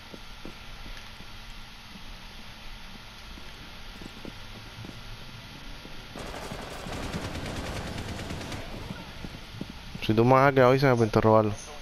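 Footsteps tread steadily on a hard floor indoors.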